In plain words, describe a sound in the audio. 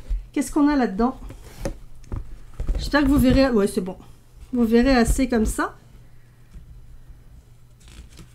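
Pages of a stiff book are turned and handled.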